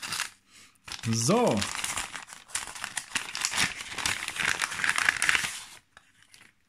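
A paper bag rustles and crinkles as it is handled.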